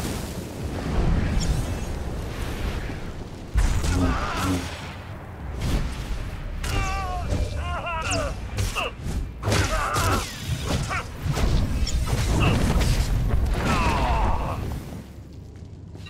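Energy blasts crackle and burst.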